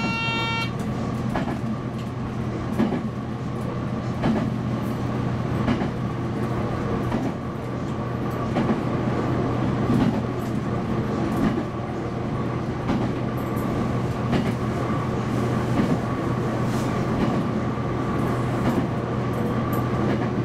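A train engine hums steadily inside the cab.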